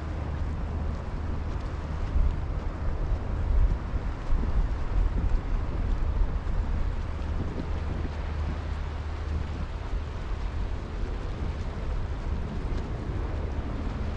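Gentle waves lap against rocks.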